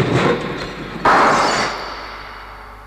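A car windscreen shatters with a loud crash.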